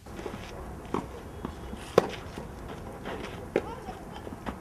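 A tennis ball is struck with a racket in sharp pops outdoors.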